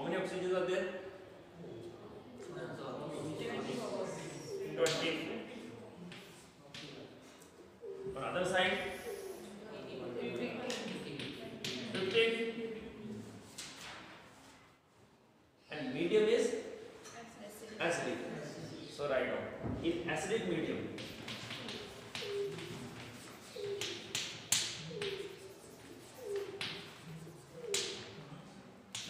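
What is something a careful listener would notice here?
A man speaks calmly and clearly in a room with some echo.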